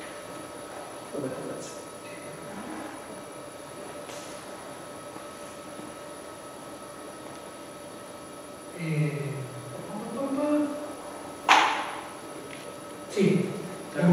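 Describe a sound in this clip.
A man speaks in pauses, heard from across a large echoing room.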